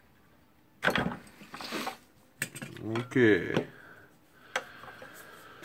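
Plastic and metal parts click and rattle as they are handled.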